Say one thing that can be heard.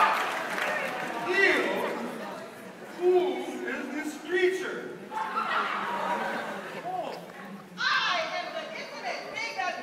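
Young performers talk and call out in a large hall.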